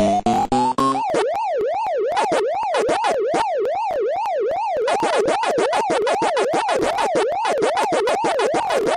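A rising and falling electronic siren wails steadily.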